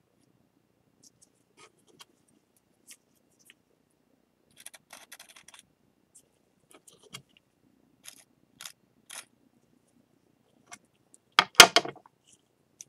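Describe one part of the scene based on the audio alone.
A metal tool scrapes and taps against a ceramic bowl.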